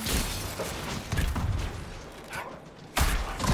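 Weapons clash and strike in a fast fight.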